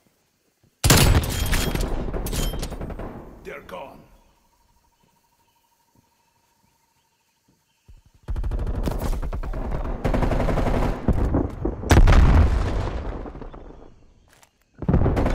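A rifle fires loud shots that echo and fade.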